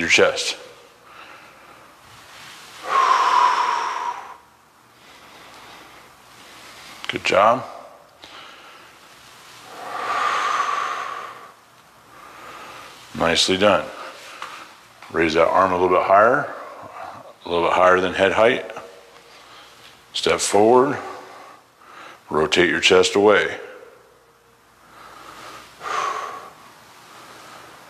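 A man speaks loudly in a hallway with a strong echo.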